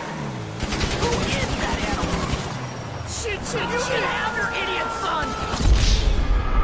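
A car engine roars as it drives fast.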